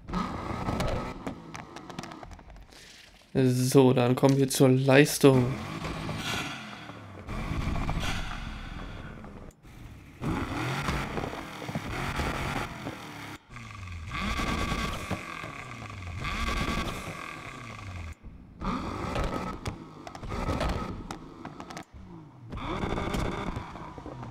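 Exhaust pops and crackles from a car.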